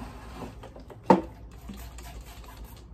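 A spray bottle sprays with a sharp hiss.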